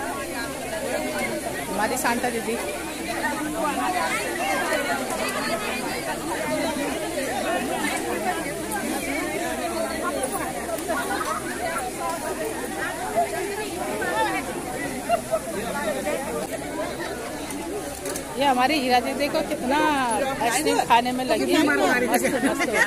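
A crowd of women chatter all around.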